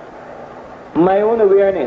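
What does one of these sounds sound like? A man with a deep voice speaks calmly and firmly close by.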